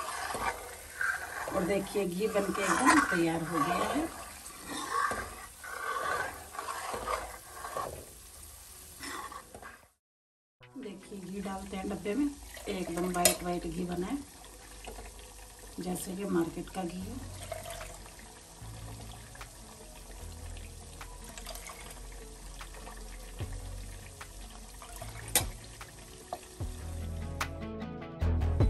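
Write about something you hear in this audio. Hot oil bubbles and sizzles in a metal pan.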